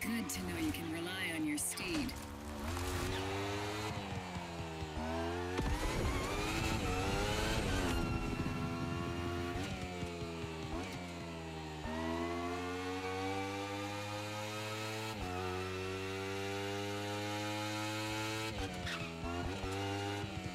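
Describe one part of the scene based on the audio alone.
A motorcycle engine screams at high revs, climbing in pitch and dropping sharply with each gear change.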